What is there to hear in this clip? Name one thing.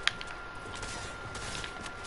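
Gunshots crack sharply in a video game.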